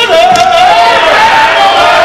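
Women clap their hands.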